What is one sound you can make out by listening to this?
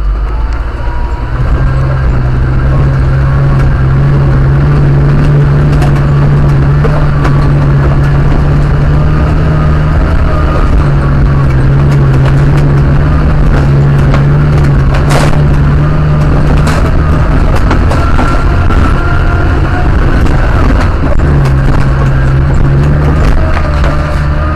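A car engine drones loudly at low revs.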